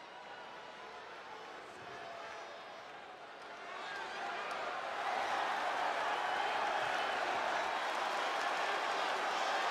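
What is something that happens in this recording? A large crowd cheers and roars in a huge echoing arena, growing louder.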